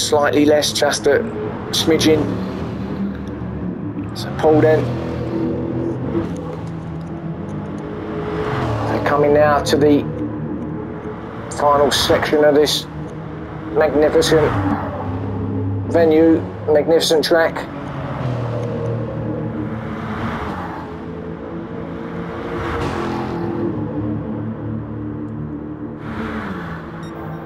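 A race car engine roars, its pitch rising and falling as it shifts gears.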